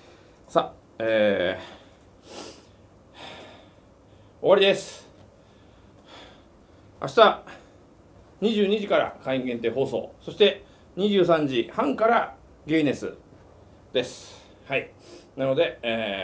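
A middle-aged man speaks close by, in bursts with pauses.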